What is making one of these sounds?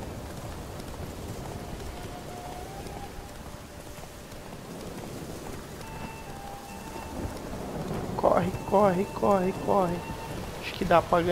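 A horse gallops along a dirt path with steady thudding hoofbeats.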